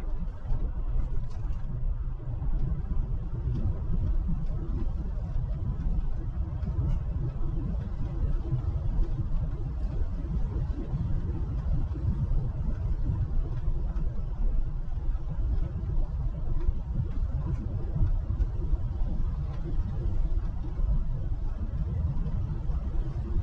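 Tyres rumble on asphalt.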